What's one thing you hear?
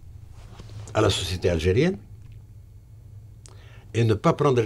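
An elderly man speaks calmly and close into a microphone, with pauses.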